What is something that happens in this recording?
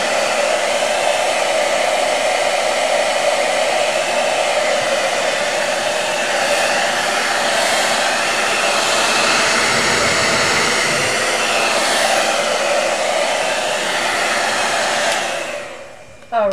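A hair dryer blows with a steady, loud whoosh, then switches off.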